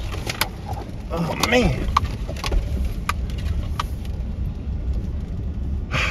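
A vehicle engine rumbles low and steady while driving.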